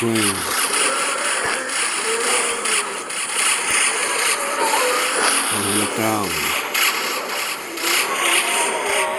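Cartoonish game sound effects of shots popping and zapping play rapidly.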